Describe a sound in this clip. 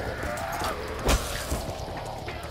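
An electric blast crackles and bursts.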